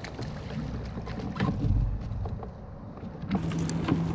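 Water splashes as a fish is pulled into a net.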